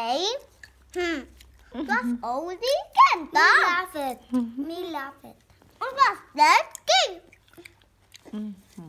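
A little boy talks up close.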